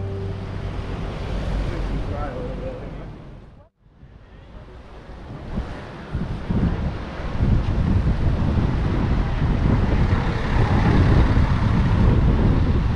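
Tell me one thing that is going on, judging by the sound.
A river rushes steadily nearby.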